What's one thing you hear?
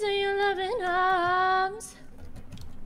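A woman sings a long, wavering note through a loudspeaker, then stops.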